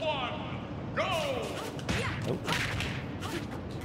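Video game blows hit and clash.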